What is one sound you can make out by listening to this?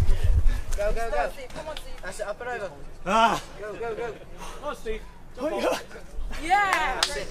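A man shouts encouragement nearby outdoors.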